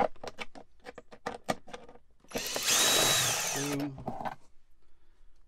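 A plastic panel clicks and rattles as it is handled.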